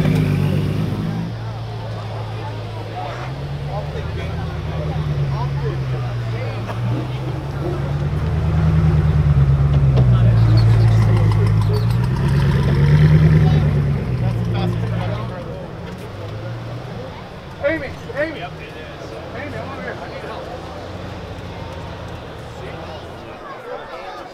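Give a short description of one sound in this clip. A sports car engine idles with a deep rumble and revs up and down.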